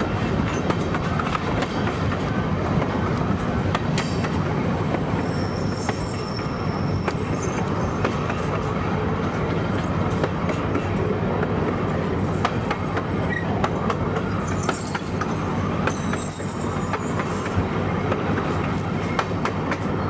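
Train wheels click and clatter over rail joints.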